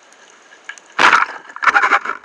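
A speargun fires underwater with a sharp snap.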